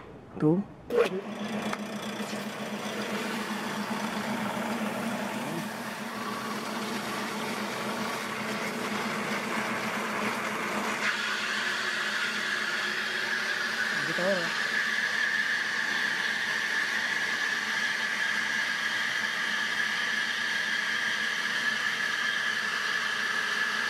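A small motor pump starts and runs with a steady hum.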